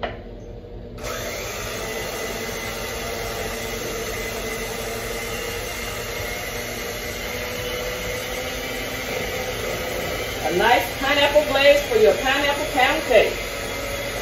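An electric hand mixer whirs steadily in a bowl.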